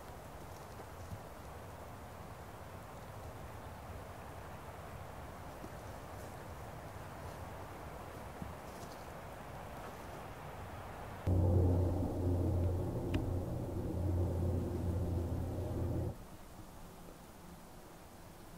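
Wind rustles through pine trees outdoors.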